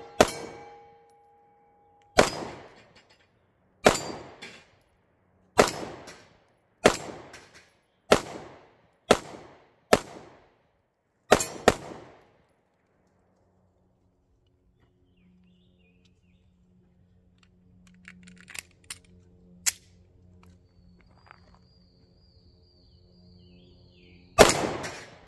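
A pistol fires loud, sharp shots that ring out outdoors.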